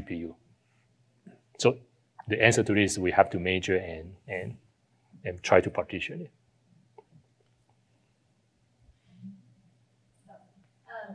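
A young man speaks into a microphone in a pausing, conversational way, heard through a loudspeaker.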